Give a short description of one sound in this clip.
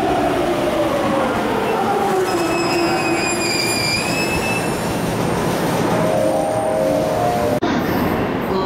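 Train wheels rumble and clatter along the rails.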